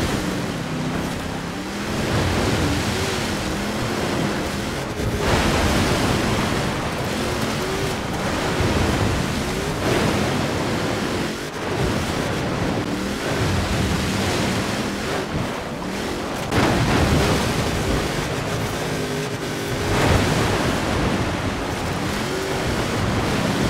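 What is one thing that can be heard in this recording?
An engine roars and revs up and down.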